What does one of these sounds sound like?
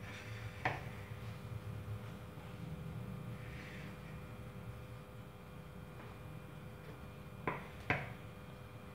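A plate knocks on a table.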